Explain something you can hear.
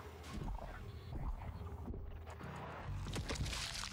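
A metal wrench strikes a creature with heavy thuds.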